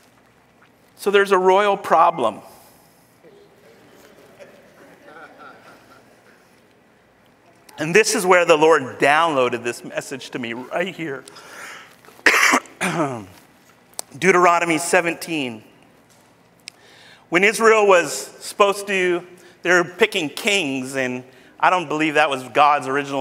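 A man speaks with animation through a microphone in a large hall, pausing between phrases.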